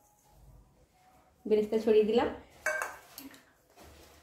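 A metal bowl is set down on a hard surface with a soft clink.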